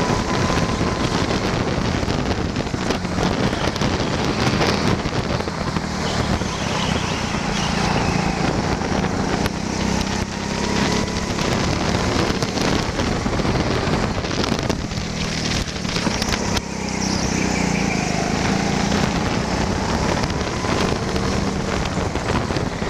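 A go-kart engine buzzes loudly up close, rising and falling in pitch.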